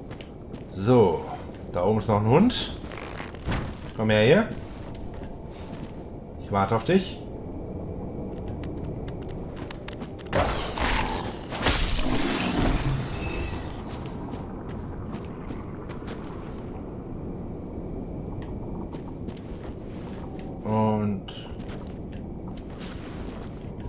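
Armoured footsteps crunch on dirt.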